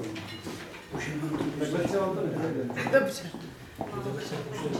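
A woman speaks cheerfully close by.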